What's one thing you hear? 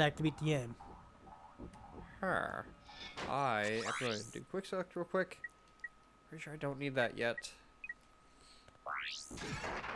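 Menu selections beep and chime.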